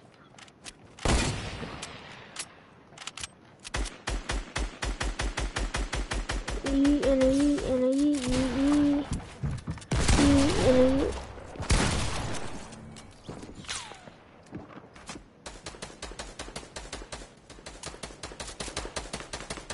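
Video game sound effects clatter and thud in quick, rapid bursts.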